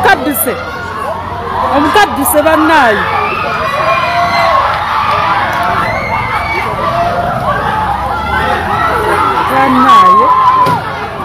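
A crowd of men and women shout and cry out loudly outdoors.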